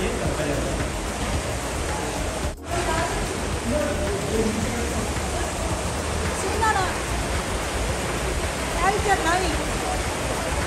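Water rushes and splashes steadily nearby.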